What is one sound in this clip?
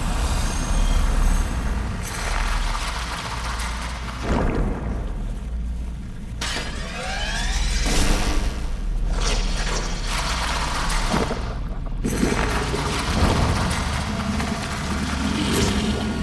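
Swirling magical energy whooshes and crackles loudly.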